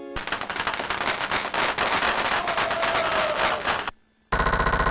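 A cheerful electronic game tune plays loudly.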